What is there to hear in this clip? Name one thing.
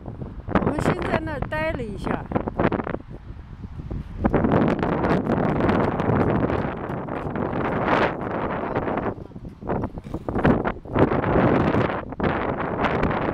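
Wind buffets the microphone in strong, uneven gusts outdoors.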